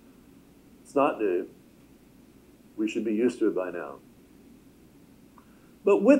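A middle-aged man speaks calmly through a microphone, in short phrases with pauses.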